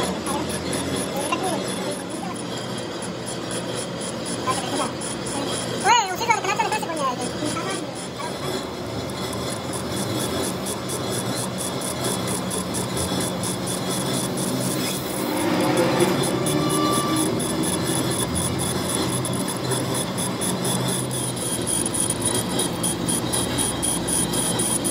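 A cutting tool scrapes and chatters against spinning metal.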